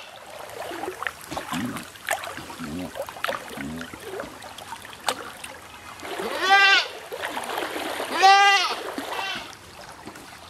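Water splashes as animals swim.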